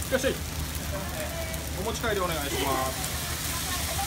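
Sauce hisses as it is poured onto a hot griddle.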